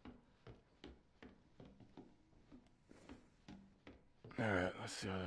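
Footsteps thud slowly and steadily on a wooden floor.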